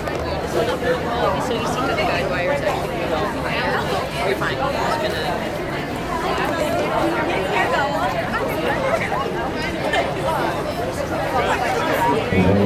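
A crowd of men, women and children chatters outdoors all around.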